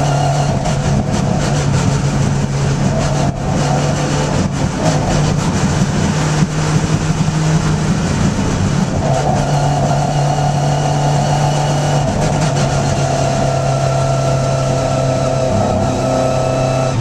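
The small four-cylinder engine of a racing Hillman Imp drones at high revs, heard from inside the cabin.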